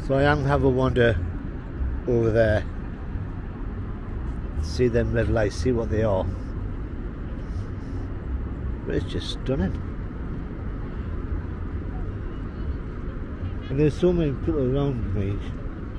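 Water laps gently against a riverbank.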